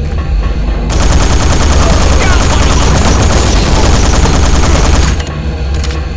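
Automatic gunfire rattles loudly in rapid bursts.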